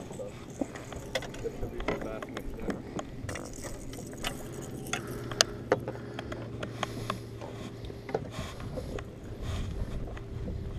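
Small waves lap against the side of a boat.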